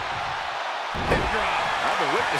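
A body slams down hard onto a wrestling mat with a heavy thud.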